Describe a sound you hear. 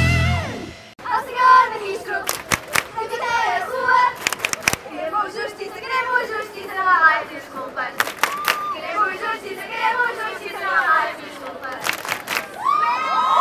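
A crowd chants loudly outdoors.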